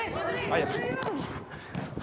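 A football is kicked hard.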